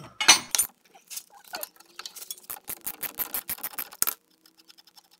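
A ratchet wrench clicks rapidly as a bolt is turned.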